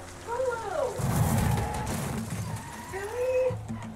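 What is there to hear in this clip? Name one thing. A car crashes and scrapes against a barrier.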